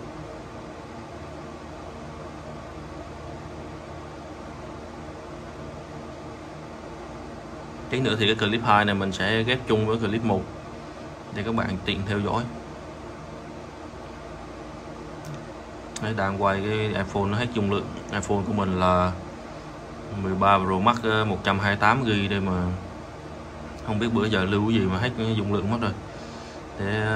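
A small fan hums steadily.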